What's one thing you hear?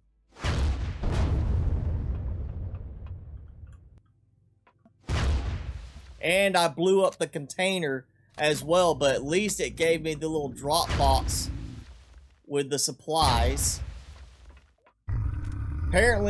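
A gun fires with loud blasts and explosions.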